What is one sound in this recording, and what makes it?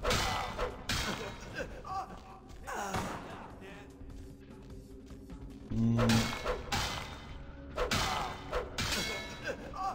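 Heavy blows thud and smack during a fight.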